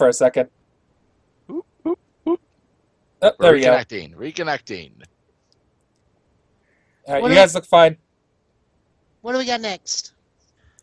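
Men talk and laugh with animation over an online call.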